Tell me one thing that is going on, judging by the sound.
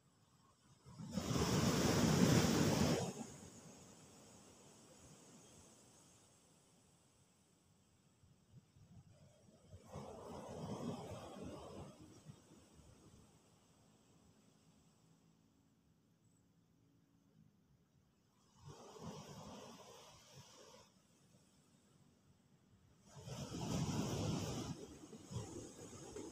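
A crab scrapes and shovels sand in bursts, close by.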